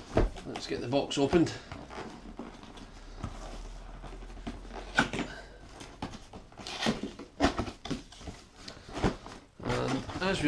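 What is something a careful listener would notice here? Cardboard scrapes and thumps as a box is handled and opened.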